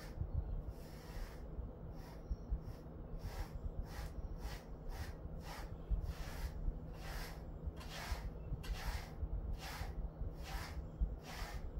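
A brush sweeps through a dog's fur in repeated soft, rhythmic swishes.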